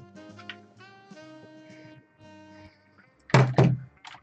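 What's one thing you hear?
Game music plays in short melodic notes.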